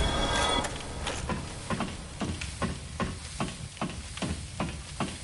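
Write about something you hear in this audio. Armoured boots clank steadily on metal ladder rungs.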